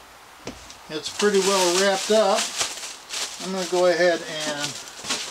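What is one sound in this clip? Plastic wrapping crinkles as it is pulled off.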